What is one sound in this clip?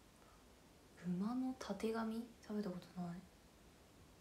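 A young woman speaks softly and briefly, close to a microphone.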